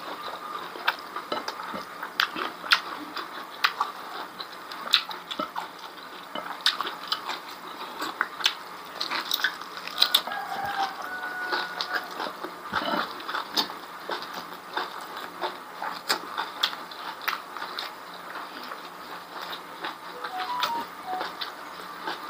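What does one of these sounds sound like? Fingers squish and scoop rice on a plate.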